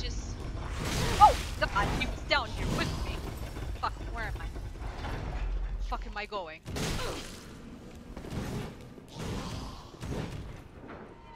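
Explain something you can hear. Swords clash with metallic rings.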